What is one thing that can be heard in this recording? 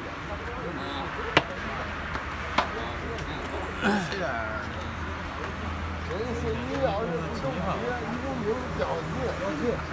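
Game pieces click sharply as they are set down on a board.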